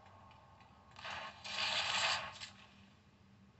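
Video game gunfire bursts from a phone speaker.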